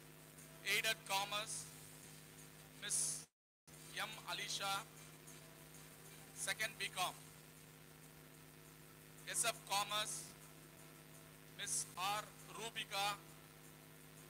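A man speaks into a microphone over a loudspeaker, calling out in short bursts.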